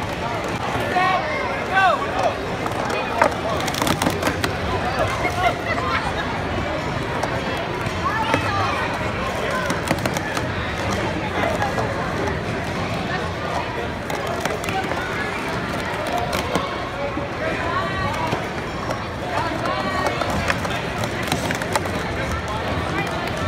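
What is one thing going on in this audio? Plastic cups clatter rapidly as they are stacked and unstacked.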